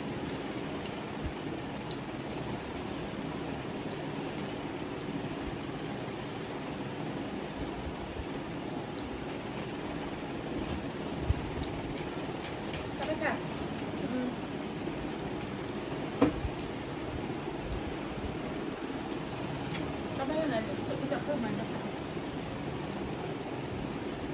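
A woman chews food close by.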